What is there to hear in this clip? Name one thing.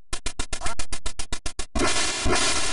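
A retro video game sounds a rapid string of electronic beeps.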